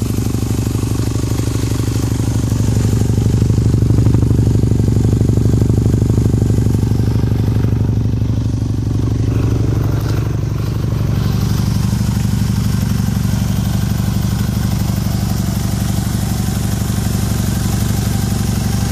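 A small engine idles close by with a steady, fast chugging rumble.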